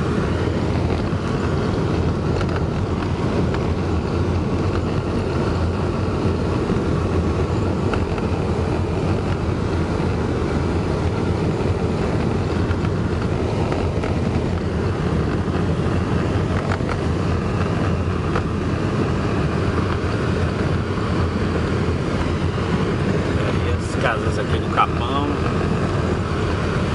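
A car engine rumbles steadily inside a moving car.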